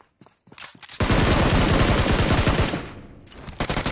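An automatic rifle fires loud rapid bursts.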